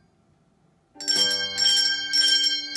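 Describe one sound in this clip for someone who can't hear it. A group of handbells rings together loudly in chords.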